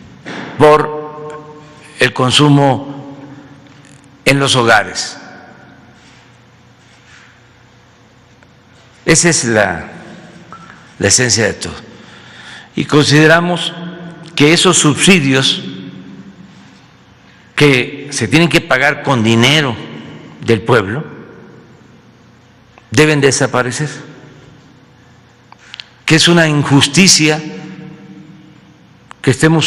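An elderly man speaks slowly and deliberately into a microphone, with long pauses between phrases.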